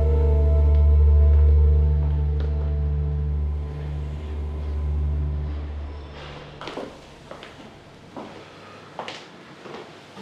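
Footsteps of a man in hard shoes tap on a stone floor.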